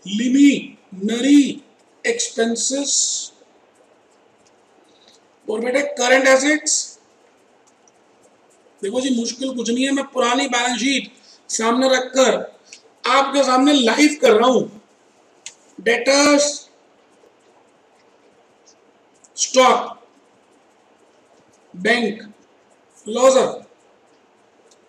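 A middle-aged man lectures calmly through a close microphone, pausing between phrases.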